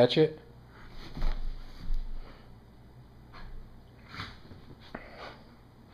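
A dog scuffles against a cushion, with soft fabric rustling.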